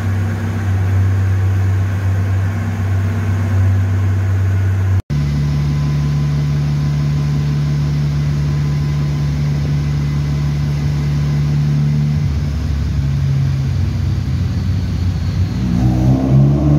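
A car engine idles with a deep steady rumble.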